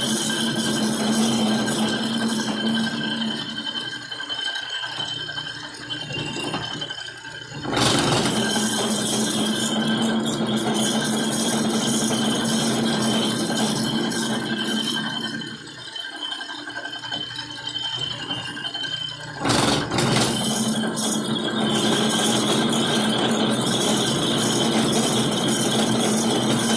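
A cutting tool scrapes against turning metal.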